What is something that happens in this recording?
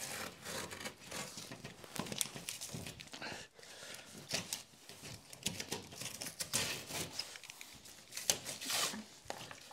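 Drywall sheets scrape and rustle as they are handled.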